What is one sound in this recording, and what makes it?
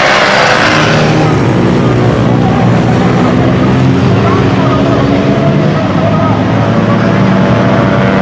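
A single motorcycle engine approaches and whines at high revs.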